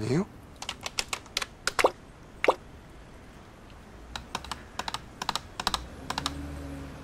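Keys clatter on a computer keyboard in quick bursts.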